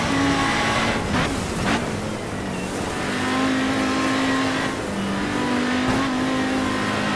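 Tyres hiss and crunch over snowy gravel.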